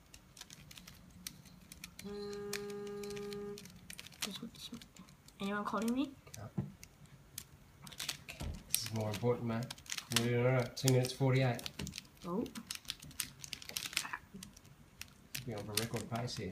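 The layers of a plastic puzzle cube click and clack as they are turned by hand.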